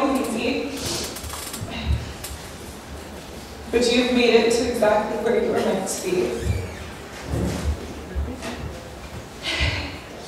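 A woman speaks into a microphone through a loudspeaker in an echoing hall.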